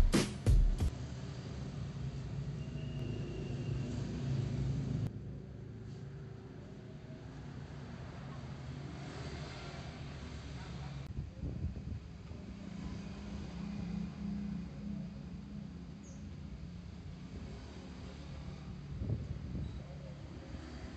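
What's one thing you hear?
A motorbike engine hums steadily close by.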